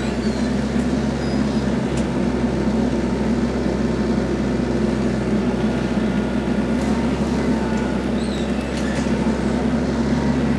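A tractor engine runs with a steady low rumble.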